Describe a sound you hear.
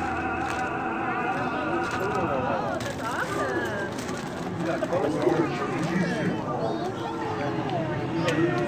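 Several children chatter and call out nearby.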